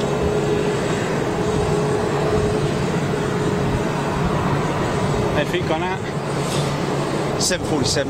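A parked airliner's engine hums steadily nearby outdoors.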